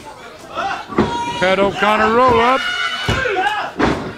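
A wrestler's body thuds hard onto a ring mat.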